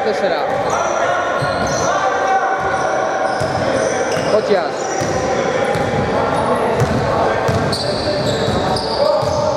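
Players call out to each other in a large echoing hall.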